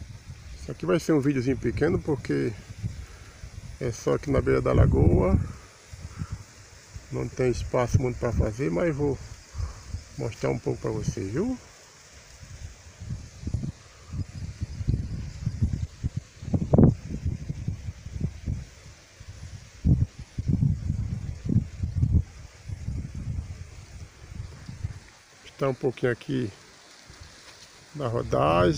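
Wind blows and gusts outdoors, rumbling against the microphone.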